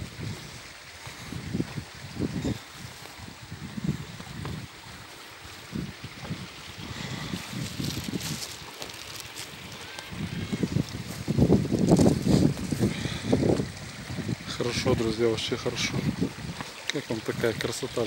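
Footsteps crunch along a dirt trail.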